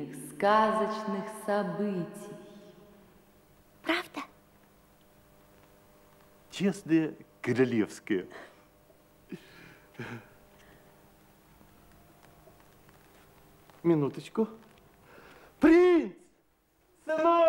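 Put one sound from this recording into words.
An elderly man speaks theatrically in a lively, sing-song voice, with a slight echo.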